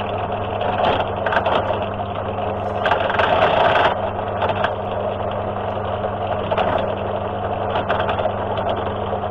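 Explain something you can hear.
A drill bit grinds and screeches through metal.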